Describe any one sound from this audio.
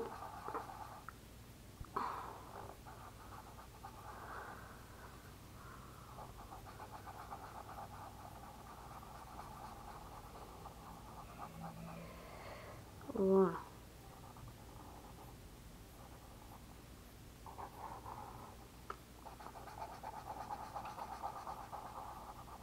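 A felt-tip marker squeaks and scratches across paper.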